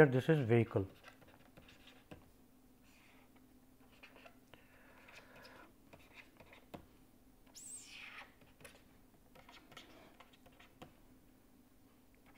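A pen scratches softly on a writing pad.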